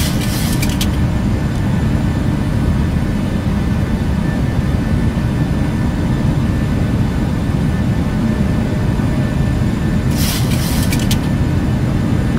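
Jet engines drone steadily.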